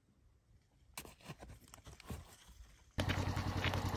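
A horse snorts and breathes close by.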